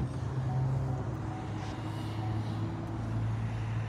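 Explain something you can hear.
A car's tailgate swings up with a soft thud.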